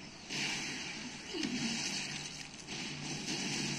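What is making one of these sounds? A monster lets out a loud, rough roar.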